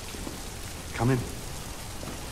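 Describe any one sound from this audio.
A man speaks a few low words, close by.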